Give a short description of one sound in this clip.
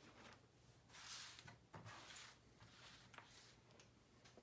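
Paper pages rustle and flap.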